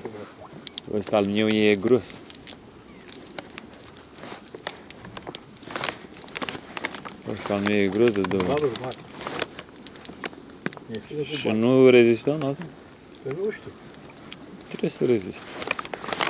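A plastic sheet crinkles and rustles close by.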